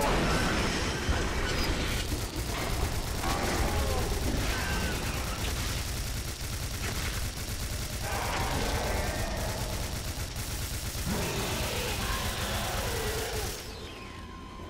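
A rotary multi-barrel gun fires in rapid bursts.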